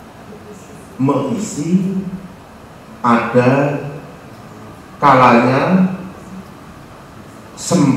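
A man reads aloud into a microphone in short bursts.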